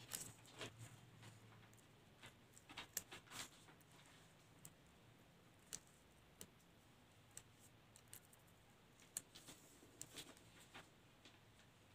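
Fingers rub and press paper on a flat surface.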